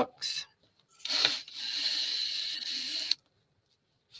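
Paper rustles as it is handled.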